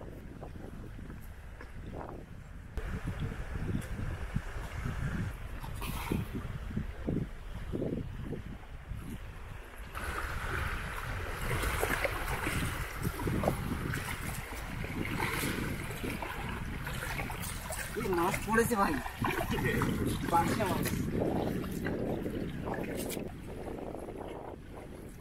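Water laps gently at a muddy shore.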